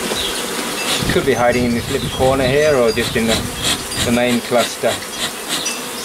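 A bee smoker's bellows puff and wheeze.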